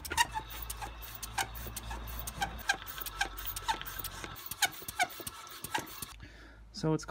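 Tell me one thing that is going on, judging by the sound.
A hand pump clicks and squeaks rhythmically.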